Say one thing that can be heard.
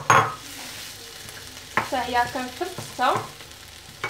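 A wooden spoon scrapes and stirs food in a frying pan.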